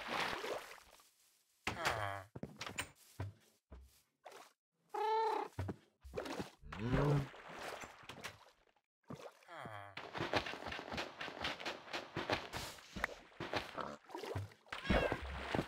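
Water splashes and bubbles around a swimmer.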